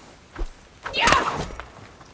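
A heavy blow thuds against a wooden shield.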